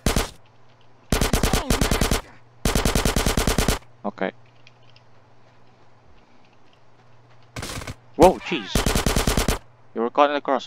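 A submachine gun fires rapid bursts of shots.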